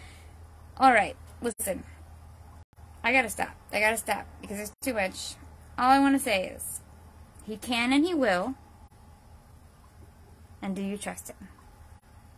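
A woman speaks close to the microphone, calmly and with pauses.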